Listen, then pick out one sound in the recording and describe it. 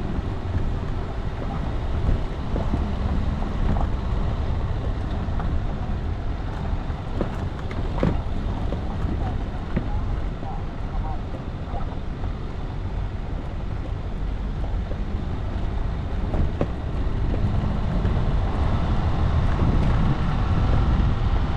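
Tyres crunch over a gravel dirt track.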